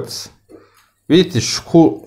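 A knife and fork clink against a plate.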